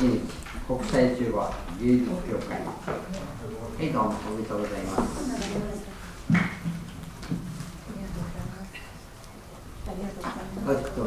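An elderly man speaks into a microphone over a loudspeaker in an echoing hall.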